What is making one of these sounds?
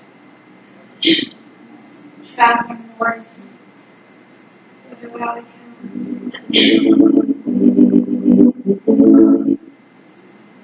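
A woman speaks briefly through a microphone in a large echoing room.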